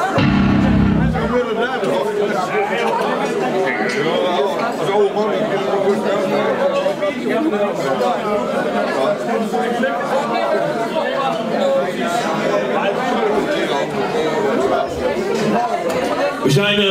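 A drummer bashes drums and cymbals.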